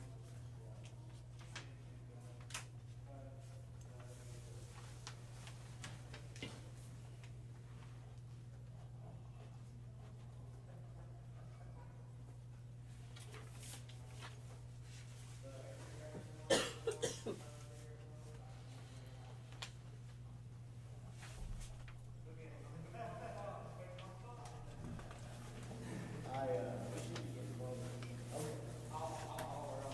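Paper rustles on a table.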